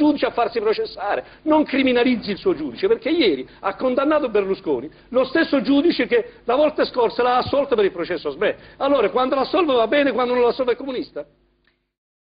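A middle-aged man speaks forcefully and with animation into a microphone.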